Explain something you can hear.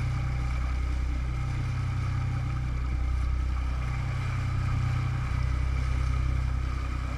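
Wind blows across the open water.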